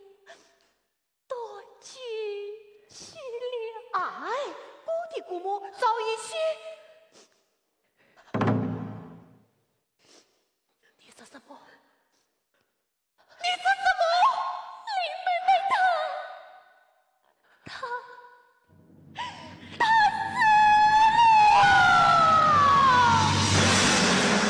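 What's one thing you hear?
A young woman sings in a high, wavering operatic voice, heard through a microphone.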